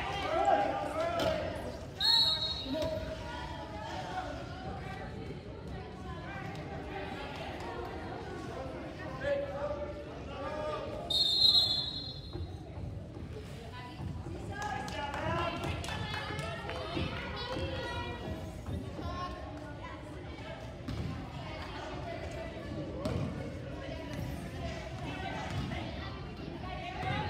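Voices of players and spectators chatter and call out throughout.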